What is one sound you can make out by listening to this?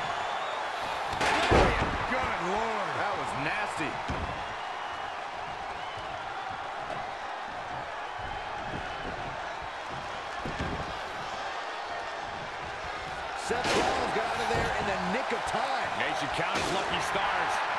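Heavy thuds sound as wrestlers slam onto the ring mat.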